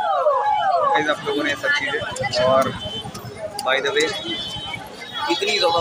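A crowd chatters and calls out nearby on a busy street.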